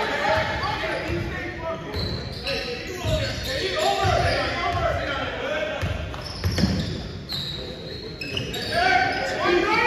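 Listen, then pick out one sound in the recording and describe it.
Young players shout and call out to one another in a large echoing gym.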